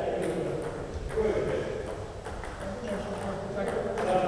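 A ping pong ball clicks back and forth off paddles and the table.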